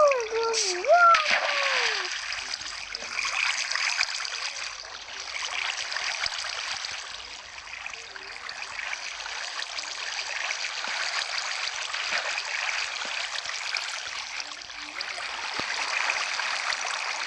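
Water burbles and swishes steadily around a swimmer moving underwater.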